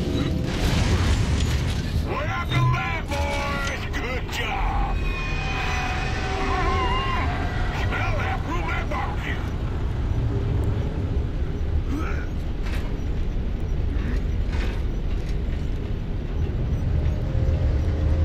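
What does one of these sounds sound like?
A heavy engine rumbles low and steadily.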